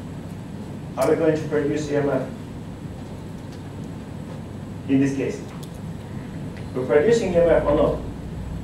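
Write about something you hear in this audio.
A man speaks in short bursts, lecturing in a room with a slight echo.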